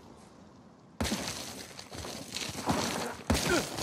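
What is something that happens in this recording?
Footsteps scrape and crunch on loose gravel.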